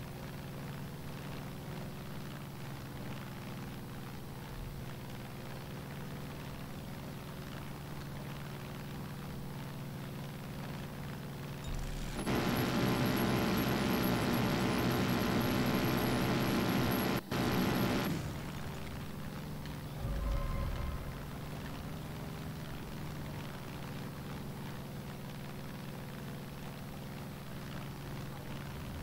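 A small propeller plane's engine drones steadily.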